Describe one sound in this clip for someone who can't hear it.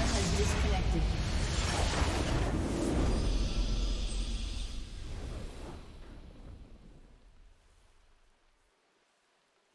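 A deep explosion booms and rumbles, then slowly fades away.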